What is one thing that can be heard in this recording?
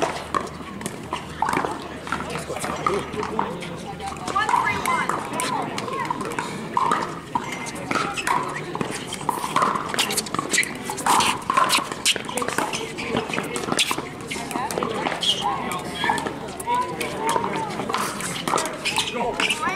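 Distant voices of players chatter outdoors.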